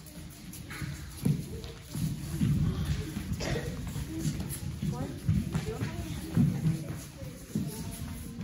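Children's feet thump and shuffle on a wooden floor as they dance.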